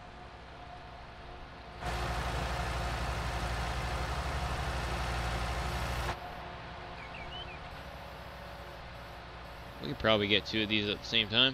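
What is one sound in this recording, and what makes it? A diesel engine rumbles steadily, louder for a while and then muffled.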